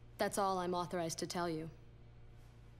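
A young woman speaks calmly and firmly, close by.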